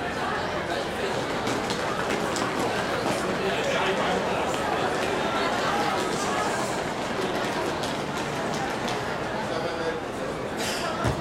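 A large crowd of young people chatters and murmurs outdoors.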